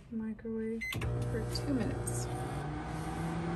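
A microwave oven hums steadily.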